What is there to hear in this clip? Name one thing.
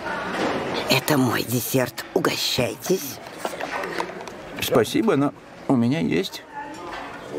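An elderly woman speaks to a man close by.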